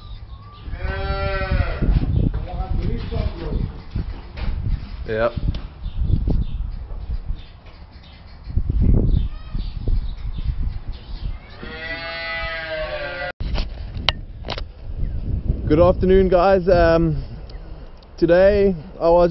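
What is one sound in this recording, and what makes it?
Cows moo loudly nearby.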